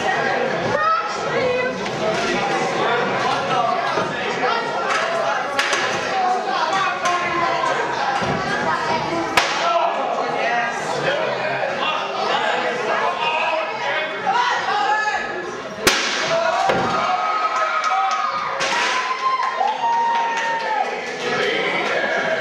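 A crowd chatters and cheers loudly in an echoing hall.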